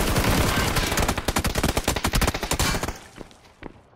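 Gunshots fire in rapid bursts, then stop.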